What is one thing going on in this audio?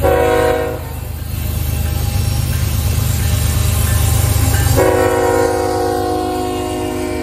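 A train horn blasts loudly in long chords.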